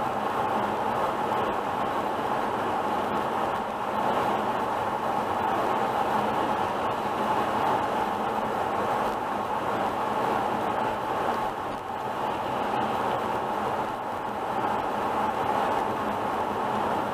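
Tyres roar steadily on the road as a car drives at speed.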